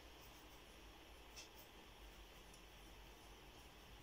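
A pencil scratches on paper.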